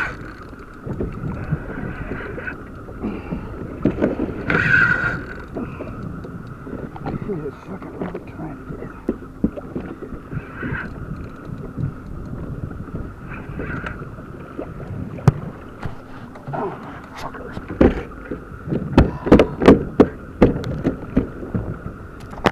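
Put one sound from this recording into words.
Choppy waves slap against a plastic kayak hull.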